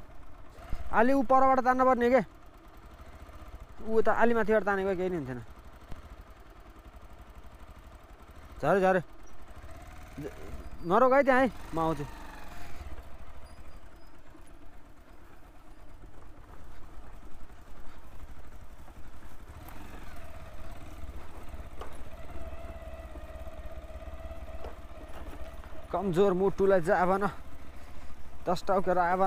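A motorcycle engine runs close by.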